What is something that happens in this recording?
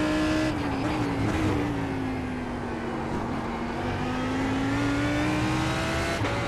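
A racing car engine drones steadily, its pitch dipping and then slowly rising.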